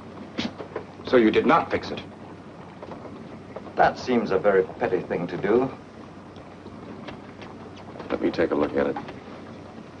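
A man speaks sharply.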